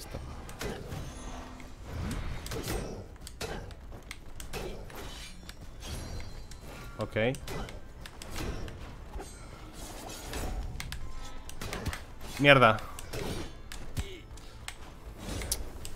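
Blades slash and clang repeatedly in a fight.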